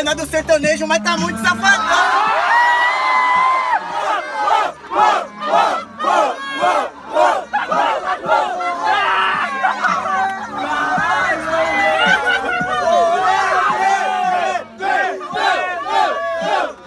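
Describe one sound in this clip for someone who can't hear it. A crowd of young men cheers and shouts loudly.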